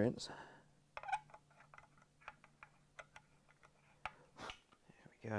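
A screwdriver clicks and scrapes as a small screw is turned into wood.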